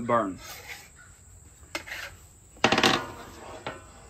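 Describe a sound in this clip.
A metal spatula scrapes across a griddle.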